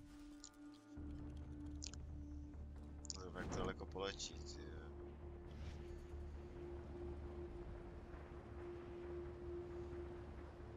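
Wind rushes steadily past a gliding hang glider.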